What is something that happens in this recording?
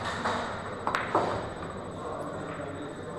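Billiard balls clack against each other on a table.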